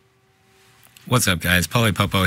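A man speaks close to a microphone.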